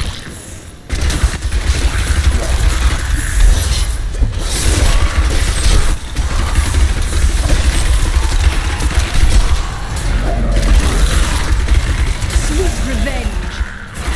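Fiery magic blasts whoosh and boom in rapid bursts.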